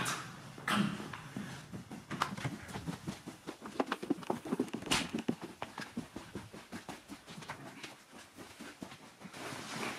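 Footsteps thud on a wooden floor and stairs.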